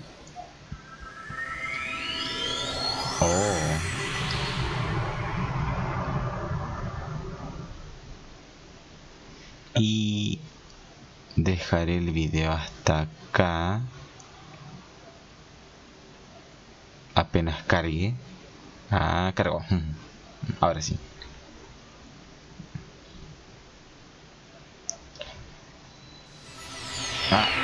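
A shimmering magical tone rises and swells, then slowly fades.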